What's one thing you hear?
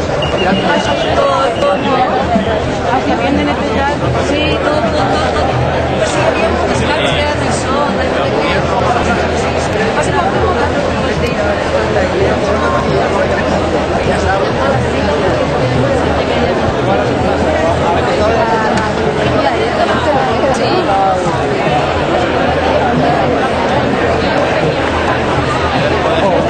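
A crowd of people talks and chatters loudly all around, outdoors.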